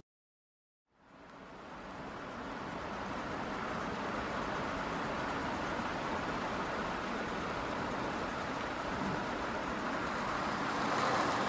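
Rain patters on a car windscreen.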